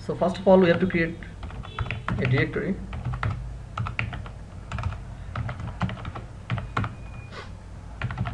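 Keys click on a keyboard in short bursts.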